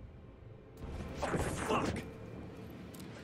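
A man speaks in a tense, urgent voice.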